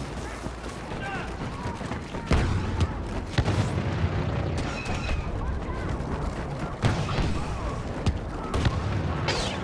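Boots thud quickly on a hard metal floor as someone runs.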